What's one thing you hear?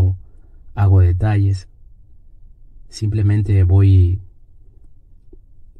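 A paintbrush strokes softly across canvas.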